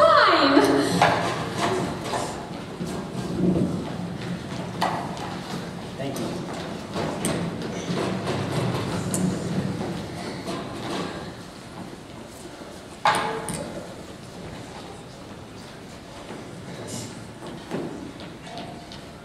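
Young men and women talk on a stage in a large hall.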